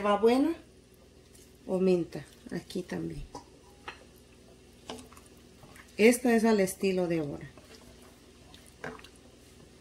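A pot of soup simmers softly.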